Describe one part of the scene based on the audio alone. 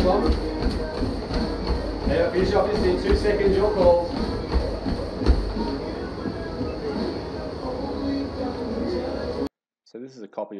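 A treadmill motor hums and its belt whirs.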